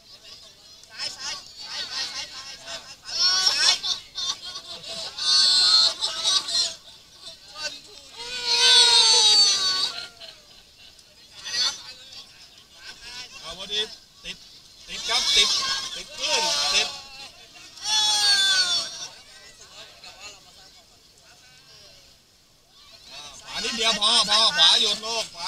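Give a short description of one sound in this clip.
Young men and women shout and laugh excitedly close by.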